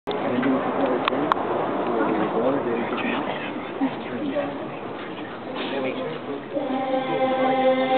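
A choir of young voices sings together.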